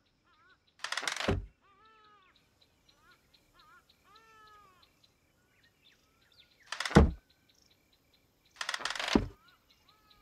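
A wooden cupboard door opens with a short knock.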